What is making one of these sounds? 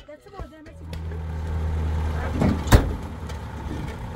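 Wooden poles clatter against a truck bed.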